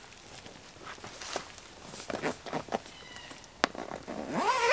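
A fabric cover rustles and scrapes.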